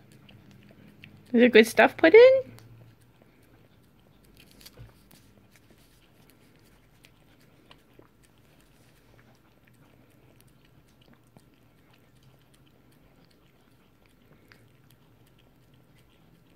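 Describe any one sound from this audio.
A small dog licks and laps softly at ice cream.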